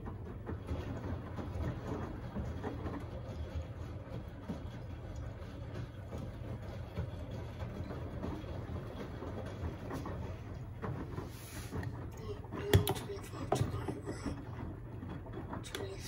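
A washing machine drum turns with a low, steady rumble.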